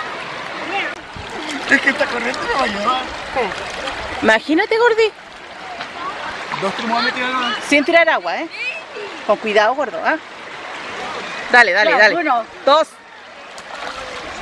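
Water splashes as a man wades and moves his hands through it.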